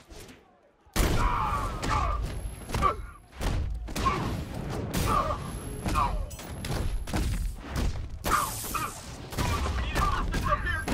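Heavy punches and kicks land in quick succession in a brawl.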